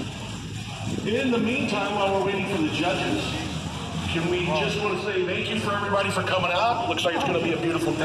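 A man talks close by, with animation.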